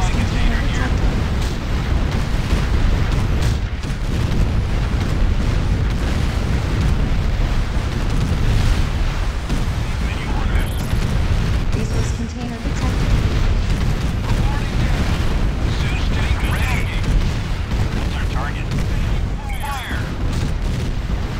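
Gunfire and explosions rumble in a battle.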